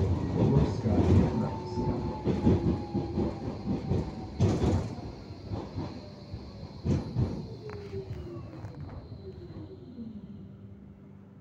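A tram's motor whines, falling in pitch as it slows to a stop.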